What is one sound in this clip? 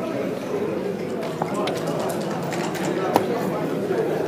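Plastic checkers click against each other on a board.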